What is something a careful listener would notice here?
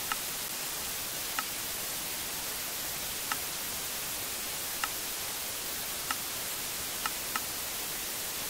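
Game menu buttons click sharply a few times.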